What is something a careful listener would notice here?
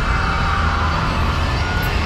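A man screams.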